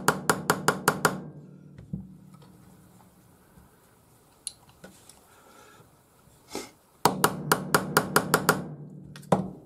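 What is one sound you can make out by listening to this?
A hammer taps rapidly on metal, ringing.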